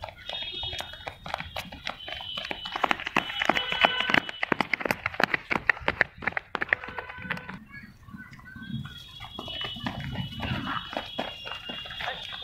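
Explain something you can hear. Children's running feet slap on concrete close by.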